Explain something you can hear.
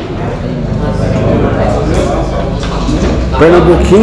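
Billiard balls click sharply together.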